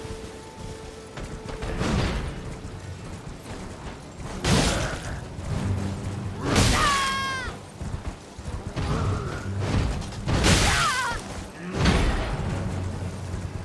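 A horse's hooves thud on grass.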